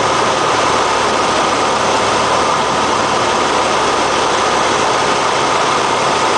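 A small plane's propeller engine drones loudly and steadily from close by.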